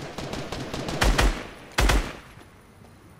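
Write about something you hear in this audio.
A gun fires a few loud shots.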